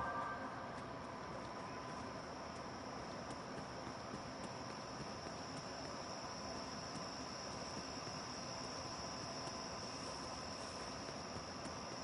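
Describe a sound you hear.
Footsteps run quickly along a dirt path.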